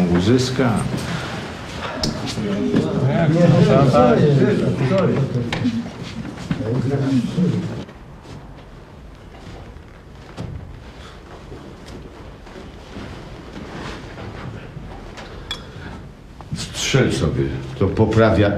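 A middle-aged man talks with animation, close by.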